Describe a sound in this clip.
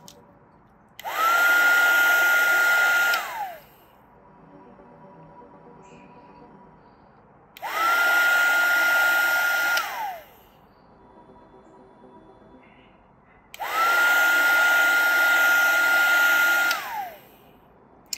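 A heat gun whirs and blows in loud bursts, with a steady whine that drops as each burst stops.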